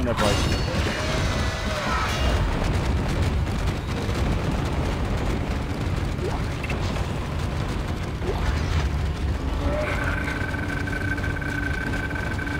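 A low machine hum drones steadily.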